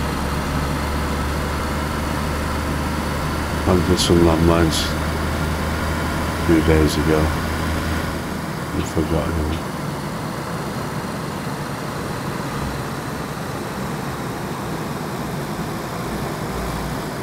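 A car engine hums steadily while driving on a paved road.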